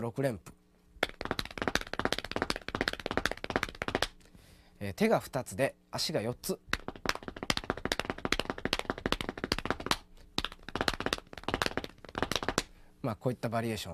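Feet tap on a wooden floor.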